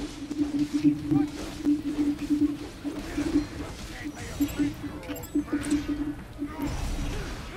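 Blades clash with sharp metallic strikes.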